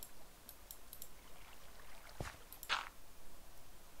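Dirt crunches as a block is dug out.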